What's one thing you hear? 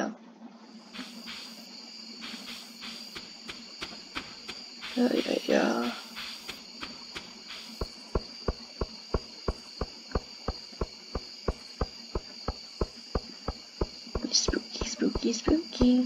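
Footsteps tap steadily at a quick, even pace.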